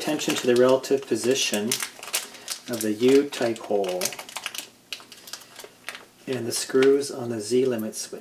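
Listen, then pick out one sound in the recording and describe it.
A plastic bag crinkles in hands.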